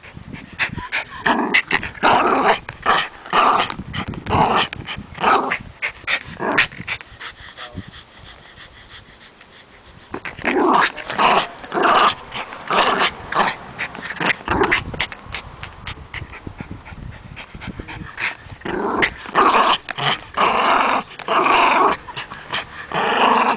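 A plastic flying disc rattles and scrapes as a dog tugs at it.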